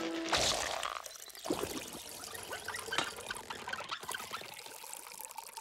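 Liquid pours and splashes into a container.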